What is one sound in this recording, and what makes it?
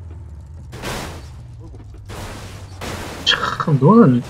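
A car crashes into a tree with a thud.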